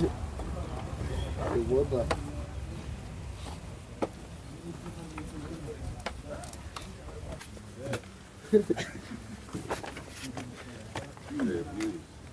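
Tomatoes knock against plastic crates.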